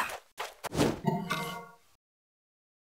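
A short bright jingle plays.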